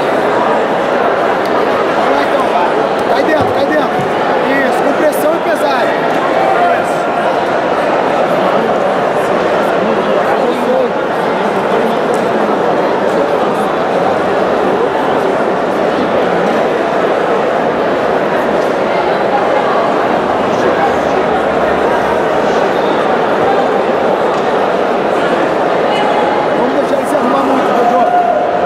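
A large crowd murmurs and shouts steadily in an echoing hall.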